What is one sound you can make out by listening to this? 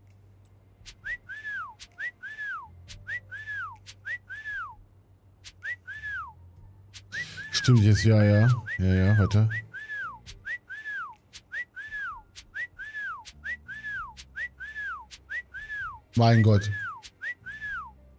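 Short rising and falling chirps repeat quickly as cards are swiped.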